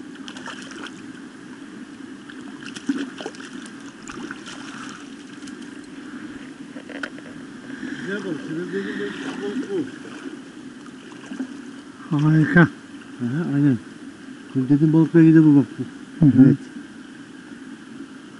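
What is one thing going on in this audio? Shallow water flows and ripples steadily.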